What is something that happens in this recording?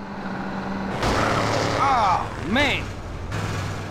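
Car tyres skid and screech on the road.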